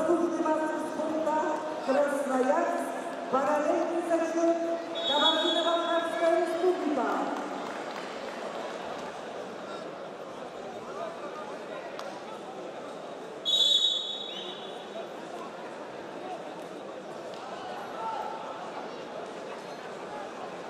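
A large crowd murmurs steadily in an echoing hall.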